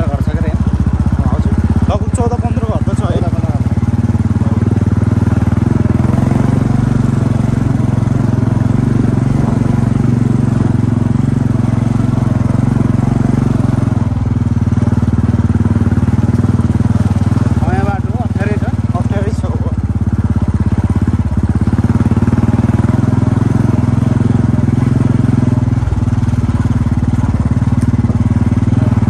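A motorcycle engine putters steadily at low speed.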